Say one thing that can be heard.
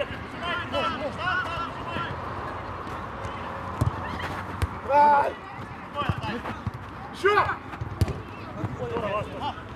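A football thuds as players kick it.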